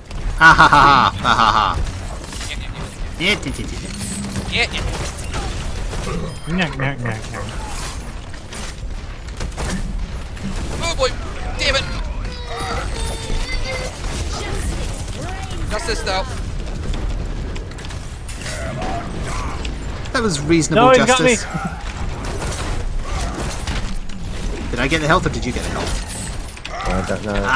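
Rapid gunfire blasts from a heavy gun.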